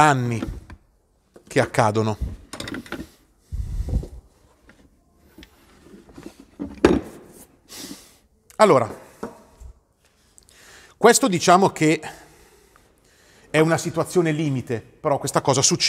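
A man talks calmly nearby, explaining in short bursts.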